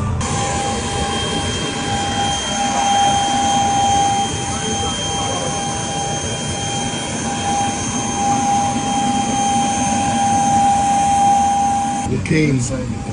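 A jet engine whines steadily nearby.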